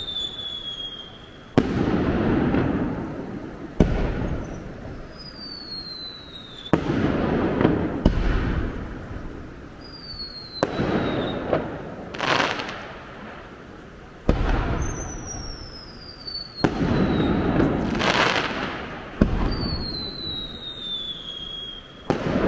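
Firework rockets whistle as they rise.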